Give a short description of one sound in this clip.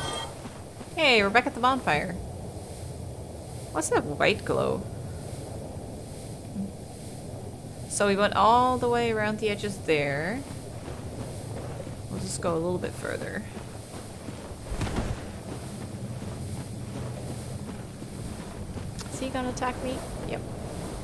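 A young woman talks casually into a nearby microphone.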